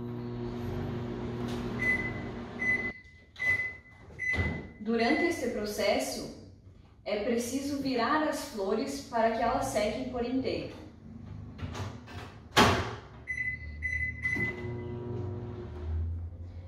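A microwave hums as it runs.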